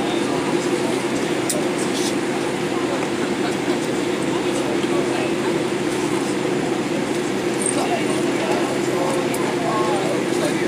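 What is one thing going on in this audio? Jet engines hum steadily inside an airliner cabin as the plane taxis.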